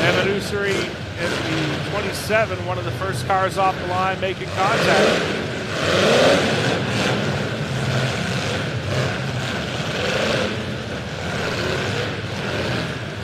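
Car engines roar and rumble nearby.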